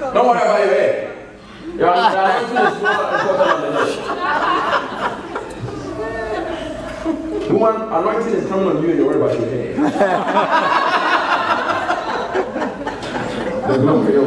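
A man speaks loudly and with fervour close by.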